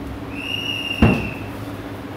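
A microphone knocks with a thud.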